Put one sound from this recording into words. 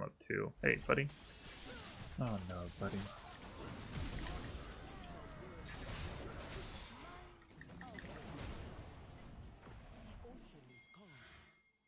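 Video game combat sound effects clash and whoosh.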